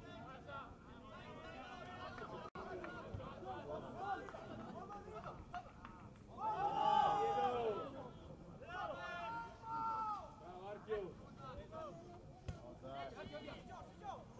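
Young men shout to one another across an open field outdoors.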